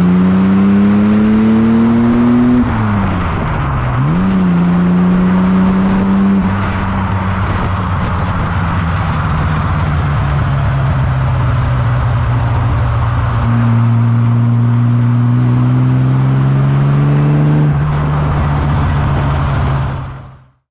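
Tyres roll over a road surface.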